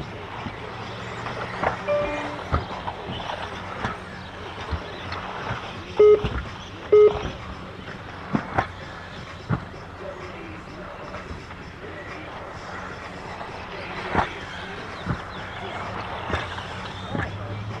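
Small plastic cars bump and clatter over the track.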